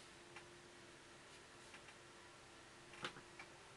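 A brush dabs and scrapes lightly on paper.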